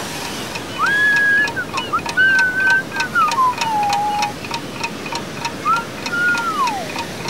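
A fishing reel clicks rapidly as its line is wound in.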